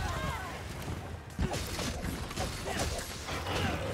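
Blades strike a large beast with sharp hits.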